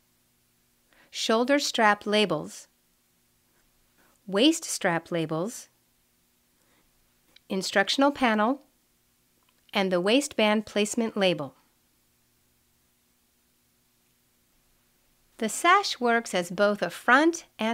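A young woman speaks calmly and clearly into a close microphone, in short phrases with pauses.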